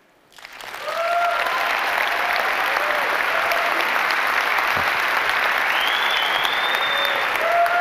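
Members of an audience cheer and whoop.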